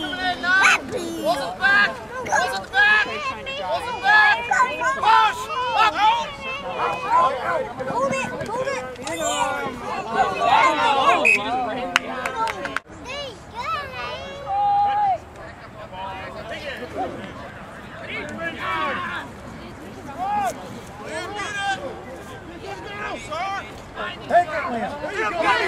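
Men shout and call out loudly outdoors.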